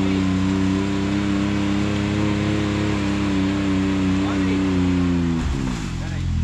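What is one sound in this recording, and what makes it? An off-road buggy's engine rumbles steadily.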